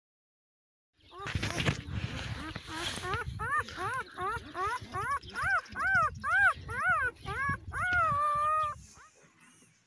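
Newborn puppies whimper and squeal in high, rising and falling cries.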